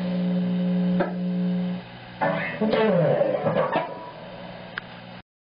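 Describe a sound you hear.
An electric guitar plays sustained chords and notes through an amplifier.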